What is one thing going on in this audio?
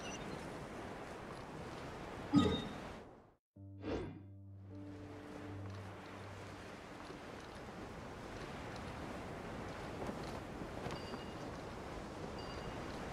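Wind rushes steadily past.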